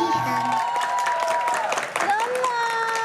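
A young boy sings loudly.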